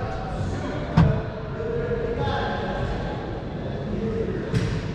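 A racquetball smacks sharply against a wall in a large echoing court.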